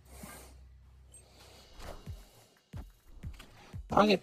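A game card snaps down with a short whoosh.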